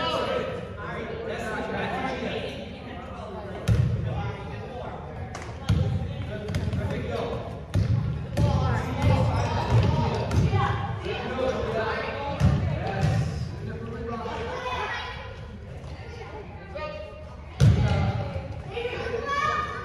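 Children call out and chatter across the hall.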